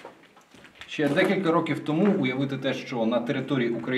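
A young man speaks calmly to a microphone close by.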